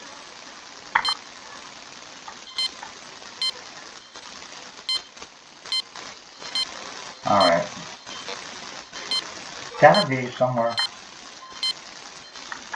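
A metal detector beeps in short, regular pulses.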